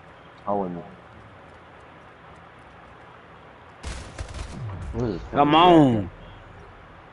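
A man exclaims loudly close to a microphone.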